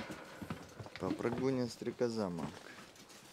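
Dogs whine and yelp close by.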